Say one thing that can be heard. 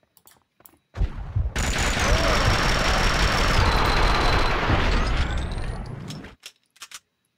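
Gunfire rattles loudly and rapidly.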